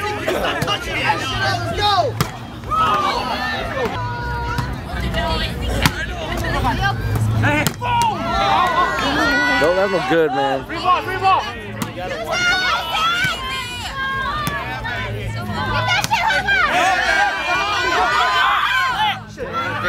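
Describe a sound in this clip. A crowd of men and women chatter and cheer outdoors.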